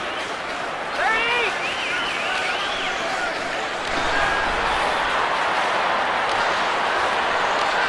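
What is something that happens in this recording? Ice skates scrape and swish across ice.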